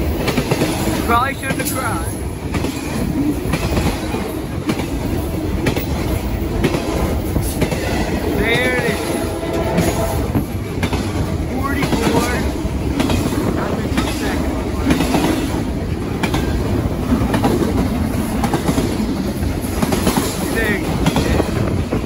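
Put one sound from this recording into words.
Train wheels squeal shrilly now and then.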